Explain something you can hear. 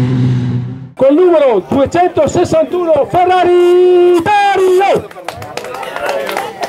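A man speaks through a loudspeaker, announcing with animation.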